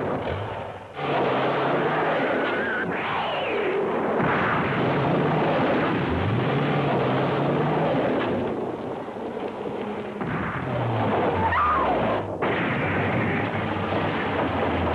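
A car engine revs loudly.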